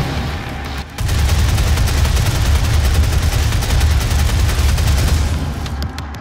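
A heavy gun fires in a rapid, loud burst.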